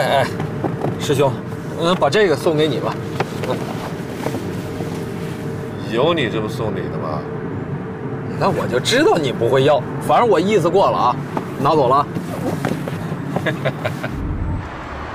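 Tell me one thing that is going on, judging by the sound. A younger man talks with animation inside a car.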